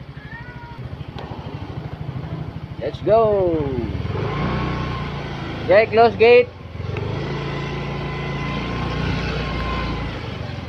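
A motorcycle engine idles and revs close by.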